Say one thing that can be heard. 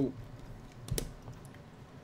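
A metal screwdriver clacks down onto a rubber mat.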